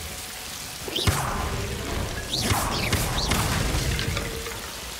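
A wooden crate smashes and splinters apart.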